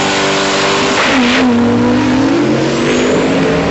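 A drag racing engine roars as the truck launches and speeds away.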